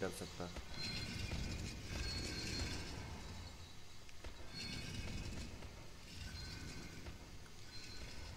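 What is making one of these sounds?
Footsteps shuffle slowly across a hard floor.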